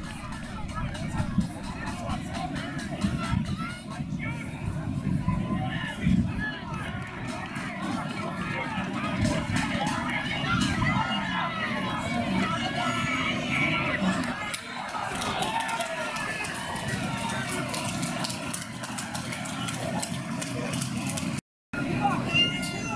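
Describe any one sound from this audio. Men shout across an open playing field.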